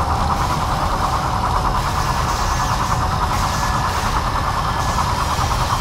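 Spinning saw blades whir steadily.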